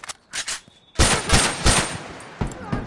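Gunfire cracks in rapid, loud bursts.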